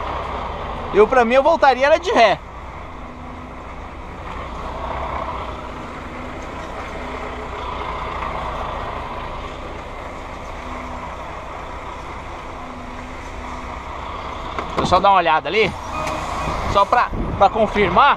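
A truck engine idles with a steady low rumble inside the cab.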